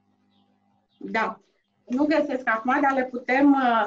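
A woman speaks calmly and clearly into a nearby microphone.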